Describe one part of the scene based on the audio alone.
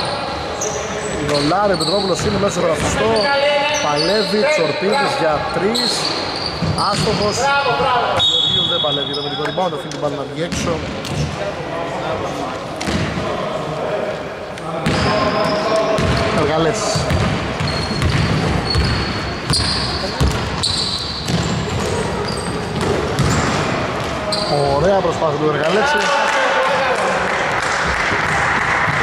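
Sneakers squeak sharply on a wooden floor in an echoing hall.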